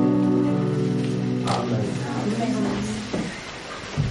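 A guitar and a keyboard play a sustained chord that rings out and fades.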